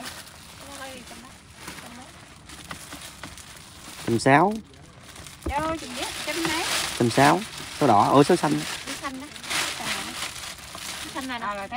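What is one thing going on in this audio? Women talk nearby with animation.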